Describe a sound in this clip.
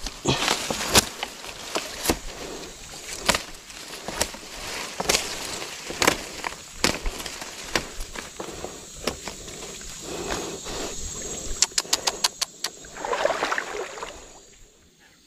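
A machete chops through stalks and brush with sharp, repeated strikes.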